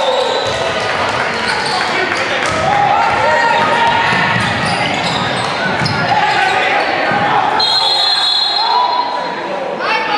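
A crowd of spectators murmurs and cheers in an echoing gym.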